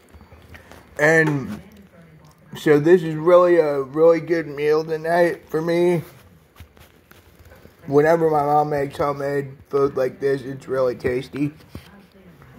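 A young man talks animatedly close to a phone microphone.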